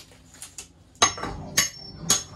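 A hammer knocks and scrapes against a wall.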